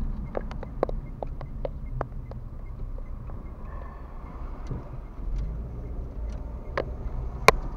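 A car engine hums at low speed, heard from inside the cabin.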